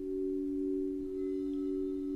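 A mallet taps a crystal bowl with a soft chime.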